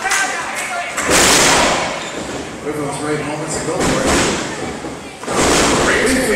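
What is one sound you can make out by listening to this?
A wrestler crashes onto the ring mat with a heavy thud.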